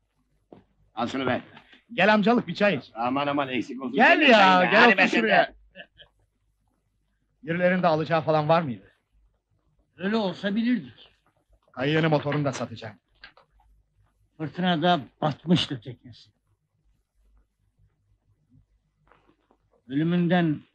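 An elderly man speaks calmly nearby.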